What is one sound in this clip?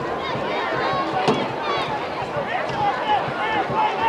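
Football players collide with a thud.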